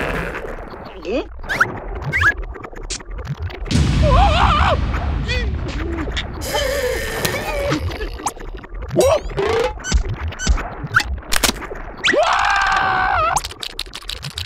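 A cartoon creature screams and shrieks in a high, squeaky voice.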